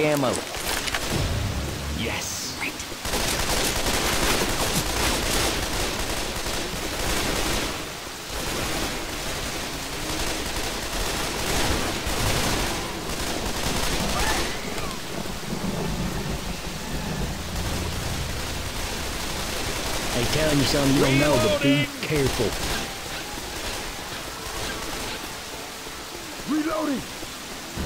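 Steady rain pours down outdoors.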